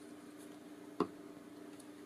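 A glue bottle is set down on a table with a knock.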